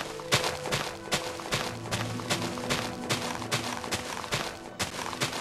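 Blocks of dirt crunch as they are dug out in quick, repeated strokes.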